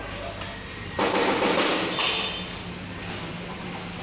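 Sticker backing paper crinkles and rustles.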